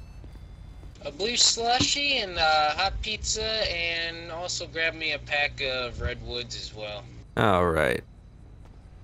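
A second man talks at length through a microphone with animation.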